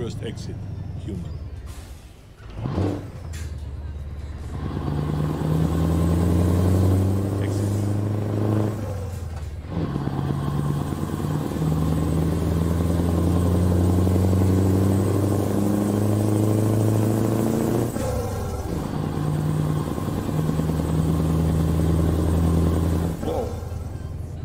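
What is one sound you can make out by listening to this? A truck engine drones steadily, dropping briefly between gears.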